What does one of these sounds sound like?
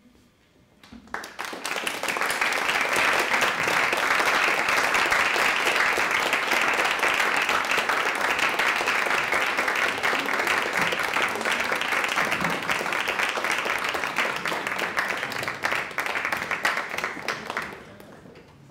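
An audience applauds loudly in a large hall and then fades.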